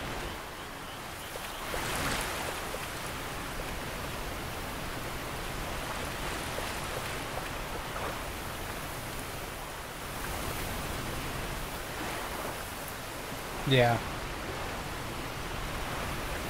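Footsteps splash and wade through shallow water.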